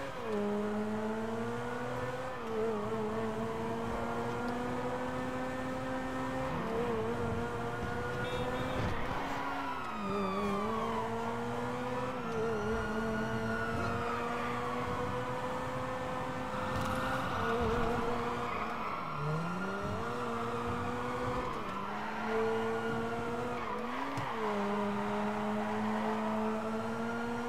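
A sports car engine roars steadily at speed, dropping in pitch briefly as it shifts gears.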